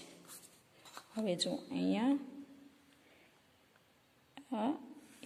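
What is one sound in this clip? A pencil scratches lightly across paper along a ruler.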